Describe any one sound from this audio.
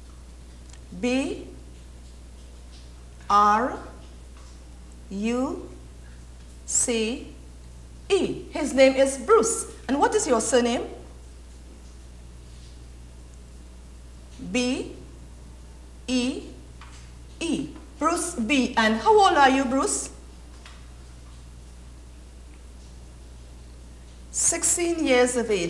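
A woman speaks clearly into a microphone, in short phrases with pauses.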